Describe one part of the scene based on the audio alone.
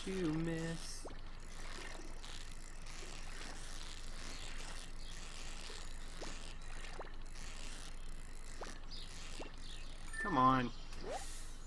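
A fishing reel whirs as a line is reeled in.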